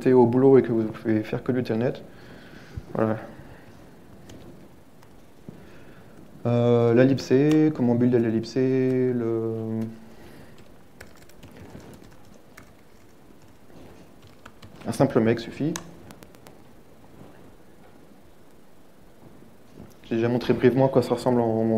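A man speaks calmly through a microphone in a large hall, pausing between phrases.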